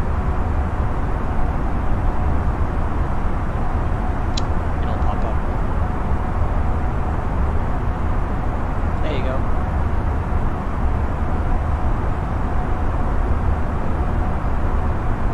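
A jet engine drones steadily from inside a cockpit.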